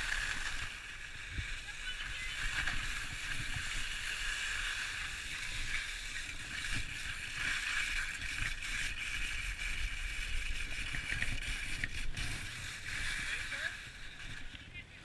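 Wind rushes past a close microphone.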